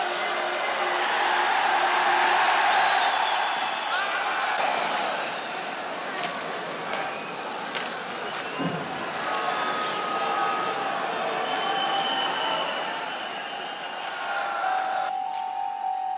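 A crowd roars in an ice hockey arena.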